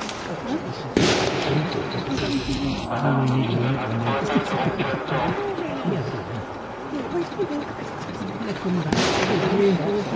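A machine gun fires loud bursts outdoors.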